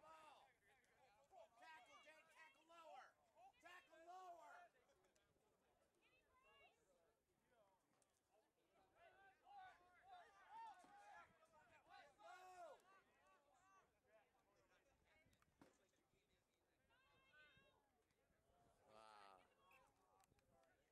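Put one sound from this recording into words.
A man nearby shouts and cheers outdoors.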